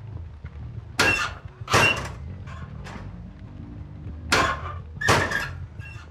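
A metal locker door rattles and bangs.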